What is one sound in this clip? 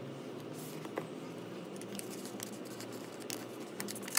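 Folded paper rustles in hands.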